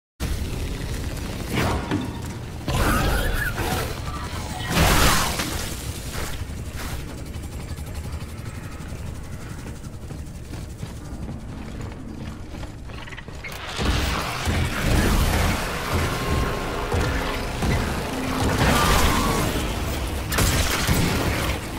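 A weapon fires in sharp bursts.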